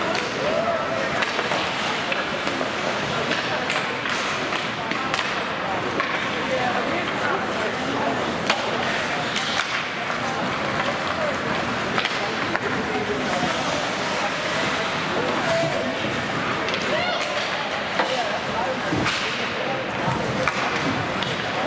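Spectators chatter and call out in the background.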